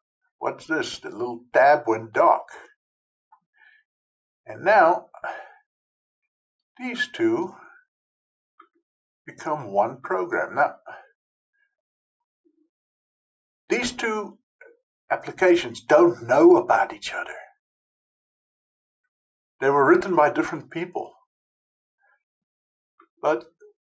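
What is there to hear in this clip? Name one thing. An elderly man talks calmly into a close microphone, with pauses.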